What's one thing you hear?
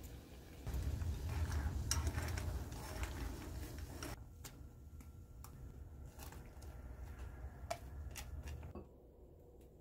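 Broth bubbles and simmers in a pot.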